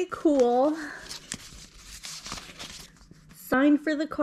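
Paper and card rustle softly as they are handled.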